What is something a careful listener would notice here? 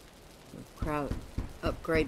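A hammer knocks on wood at a workbench.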